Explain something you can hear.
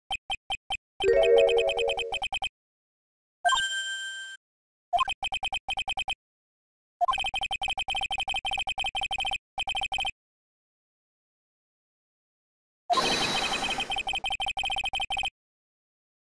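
Rapid electronic blips tick in quick bursts, like a typewriter.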